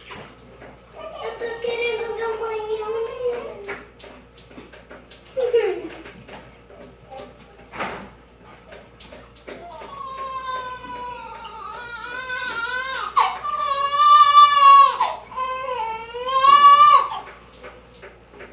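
A young girl talks and squeals excitedly close by.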